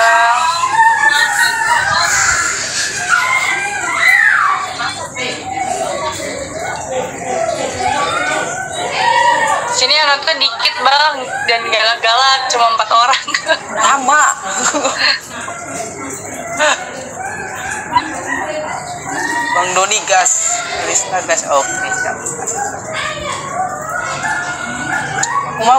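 A young woman talks and laughs through an online call.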